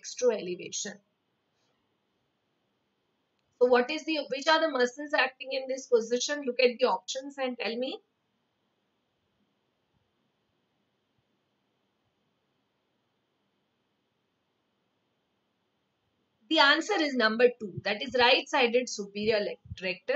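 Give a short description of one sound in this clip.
A young woman speaks calmly into a microphone, with long pauses.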